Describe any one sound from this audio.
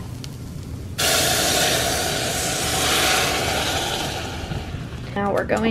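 Liquid pours into a hot pan and sizzles loudly.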